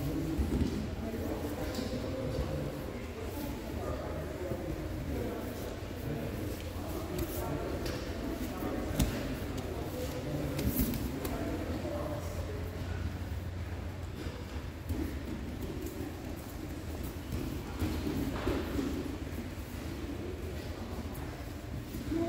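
Bodies shuffle and scuff on mats in a large echoing hall.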